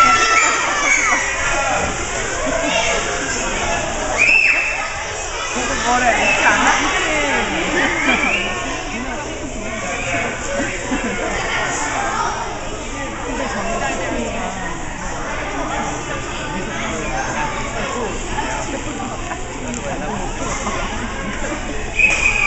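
Children chatter in an echoing indoor hall.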